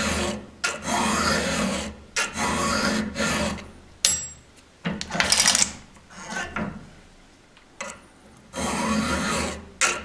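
A metal file rasps across a saw chain in long, steady strokes.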